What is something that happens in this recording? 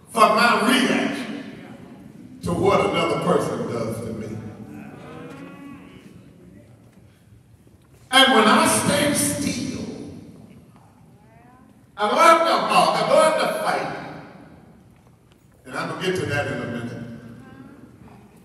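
An elderly man preaches passionately into a microphone in a large echoing hall, in loud bursts.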